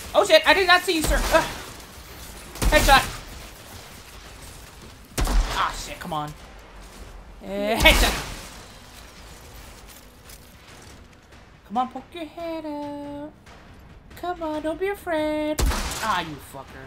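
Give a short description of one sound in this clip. A rifle fires loud single shots that boom and echo.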